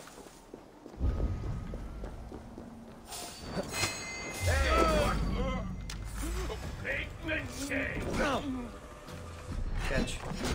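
Swords clash and slash in a close fight.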